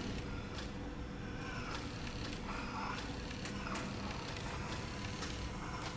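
A robotic arm whirs softly as it moves.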